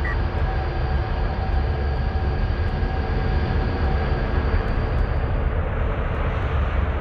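Heavy vehicle engines rumble steadily.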